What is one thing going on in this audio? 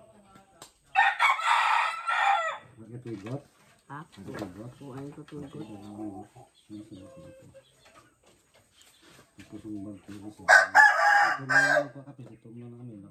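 A rooster squawks loudly.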